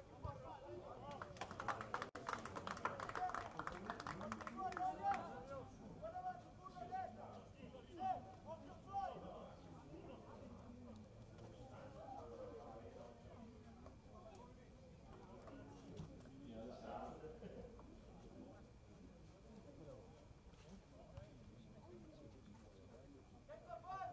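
Men and women in a crowd of spectators chatter and call out nearby, outdoors.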